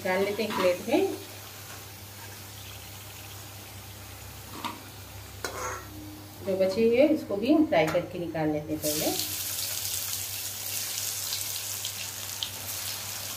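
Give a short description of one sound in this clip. Hot oil sizzles and crackles in a frying pan.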